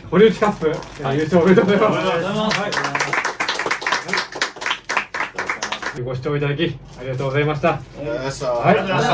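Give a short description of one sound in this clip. Young men speak cheerfully.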